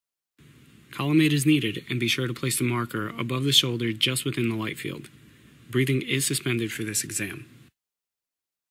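A man speaks calmly and clearly up close.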